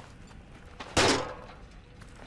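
A heavy metal bin bangs loudly.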